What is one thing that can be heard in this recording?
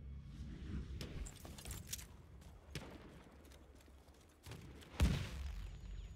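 Rifle shots crack and echo.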